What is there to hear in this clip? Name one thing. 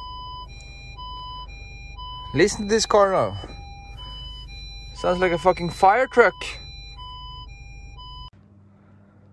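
A car's parking sensor beeps in a quick, steady rhythm.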